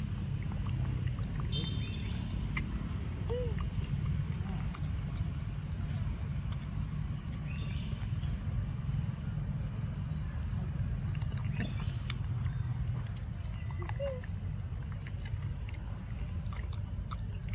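A monkey chews and munches wet fruit up close.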